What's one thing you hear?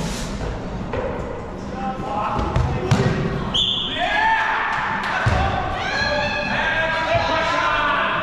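A ball thuds against the floor and bodies.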